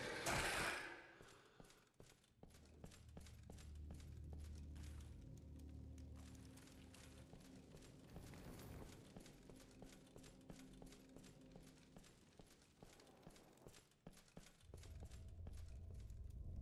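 Heavy armored footsteps clank steadily on stone.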